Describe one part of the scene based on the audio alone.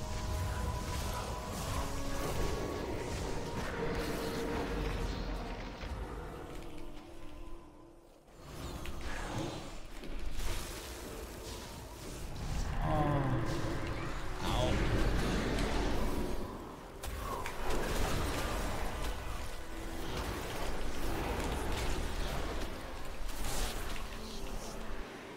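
Magic spells whoosh and crackle in a video game fight.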